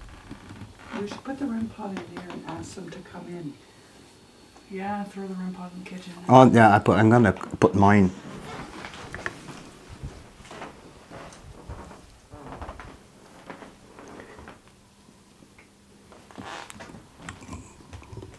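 A young woman speaks calmly in a quiet room.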